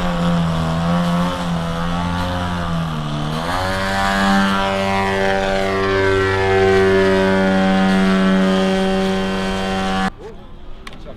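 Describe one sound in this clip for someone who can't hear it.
A model airplane engine buzzes loudly, its pitch dipping and then rising as the plane climbs.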